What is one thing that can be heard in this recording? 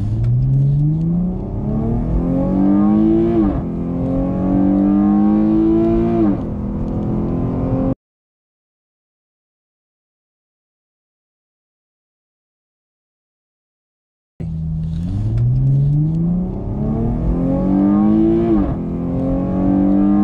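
A car engine roars as it accelerates hard, its pitch climbing steadily.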